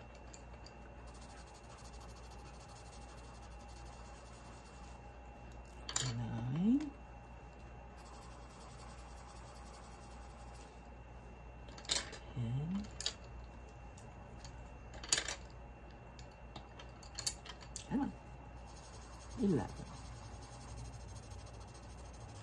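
A pencil scratches softly on paper while colouring.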